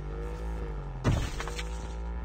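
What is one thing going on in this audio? A motorcycle lands with a heavy thud.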